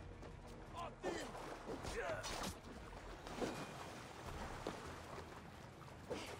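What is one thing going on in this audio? Water splashes as someone wades through the shallows.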